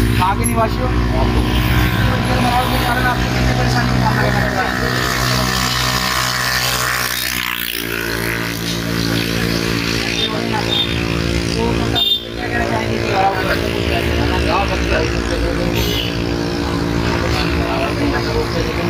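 An elderly man speaks into a microphone close by.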